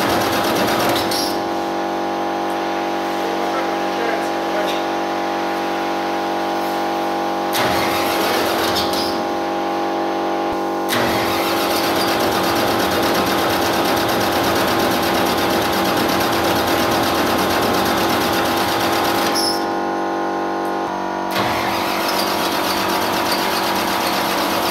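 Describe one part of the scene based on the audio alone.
Metal clanks.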